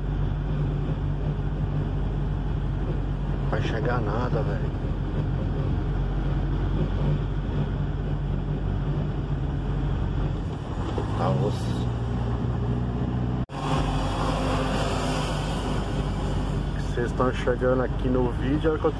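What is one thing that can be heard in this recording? Tyres roll on a road with a steady rumble.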